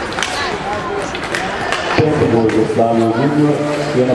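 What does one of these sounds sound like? Hockey sticks clack and scrape on the ice.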